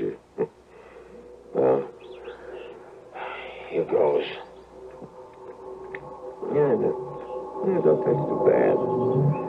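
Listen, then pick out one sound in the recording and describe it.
An old radio plays a crackly, muffled broadcast.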